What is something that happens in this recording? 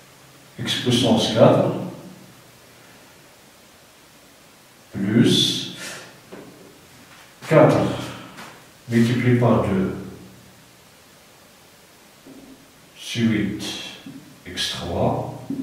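A middle-aged man speaks calmly nearby in short phrases.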